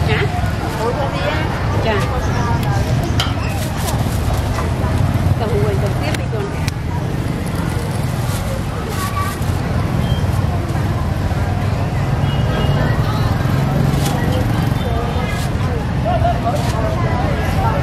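A plastic bag rustles as it is filled and tied.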